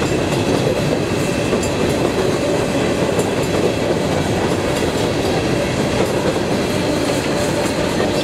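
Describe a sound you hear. A long freight train rumbles past close by, wheels clattering on the rails.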